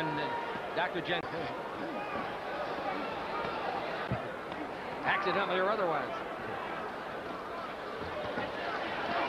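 A crowd murmurs and cheers in a large hall.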